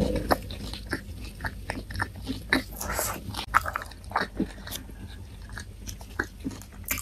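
A young woman chews food close to a microphone, with wet mouth sounds.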